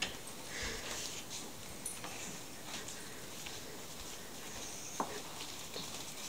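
A child's footsteps patter across a wooden floor.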